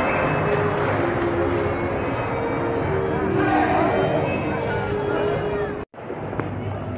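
A crowd sings together in a large echoing hall.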